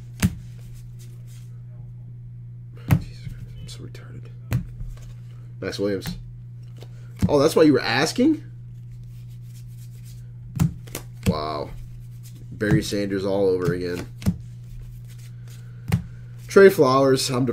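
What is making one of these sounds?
Trading cards rustle and flick in hands.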